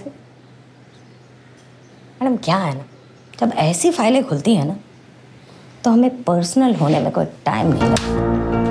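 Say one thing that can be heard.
A second woman answers calmly nearby.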